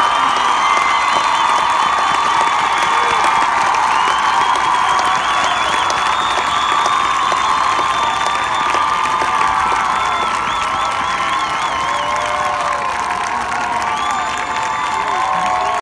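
A marching band's brass plays a loud sustained chord in a large open stadium.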